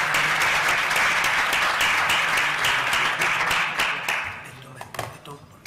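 An audience applauds loudly in a room, then the clapping fades away.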